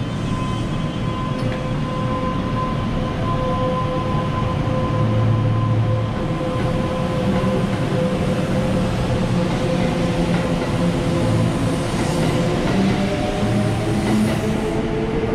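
Train wheels rumble and clatter over the rails, growing louder.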